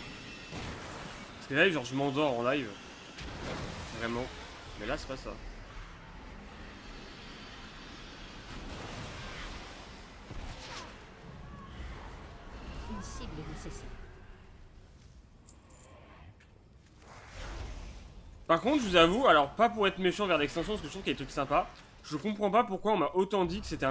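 Spell effects whoosh and crackle during a game battle.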